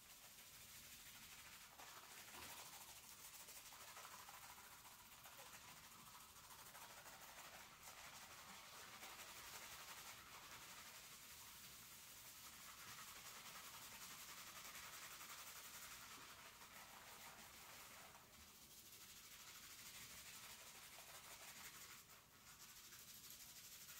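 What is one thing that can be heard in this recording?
Fingers scrub and squelch through soapy, lathered hair close by.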